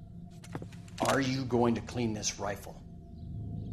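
A man asks a question in a low, firm voice.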